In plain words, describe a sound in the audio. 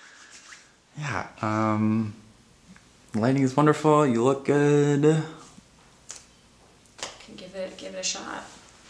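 A young woman sings short vocal phrases close by.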